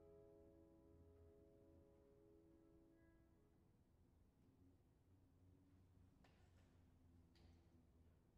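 A grand piano plays softly in a large, echoing hall.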